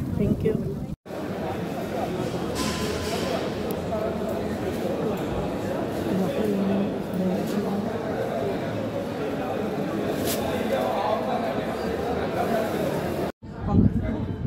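A crowd murmurs and chatters in a busy echoing hall.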